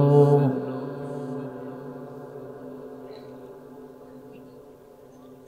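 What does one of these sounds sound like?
A man chants a long held note loudly through a microphone and loudspeakers, which rings out in a long fading echo.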